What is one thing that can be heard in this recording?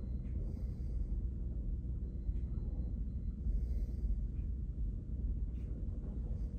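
Fabric rustles and rubs right against the microphone with a low rumble.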